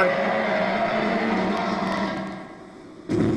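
A large creature growls loudly.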